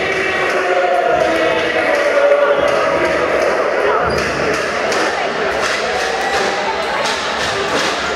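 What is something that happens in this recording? Players slap hands in high fives.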